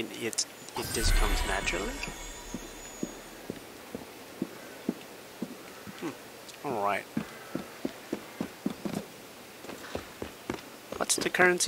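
Footsteps patter quickly across a tiled roof.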